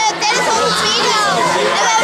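A young boy shouts excitedly nearby.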